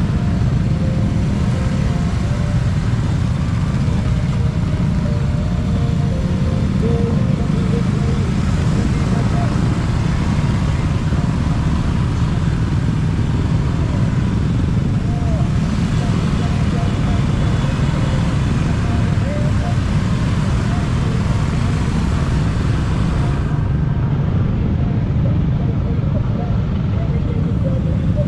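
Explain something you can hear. Small scooters cruise along a road in a group.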